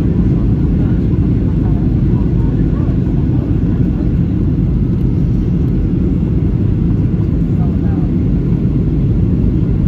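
A jet engine roars steadily inside an airplane cabin in flight.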